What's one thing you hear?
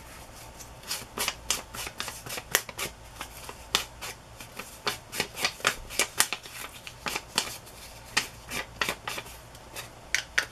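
A rubber stamp taps repeatedly on an ink pad.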